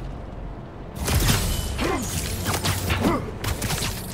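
Heavy blows and thuds land in a brawl.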